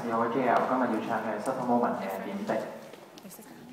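A young man sings through a microphone over loudspeakers in a large echoing hall.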